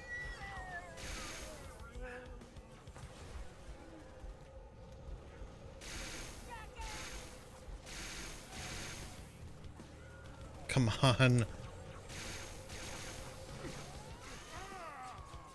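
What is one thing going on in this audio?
Energy weapons fire in short, buzzing bursts.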